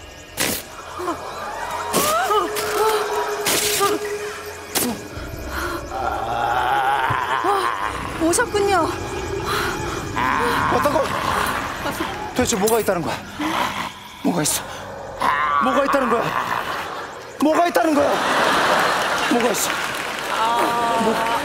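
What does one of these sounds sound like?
A young man speaks loudly and with animation, heard through a microphone.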